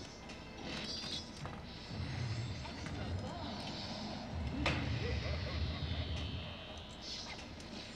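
A pinball game rings and bleeps with electronic sounds.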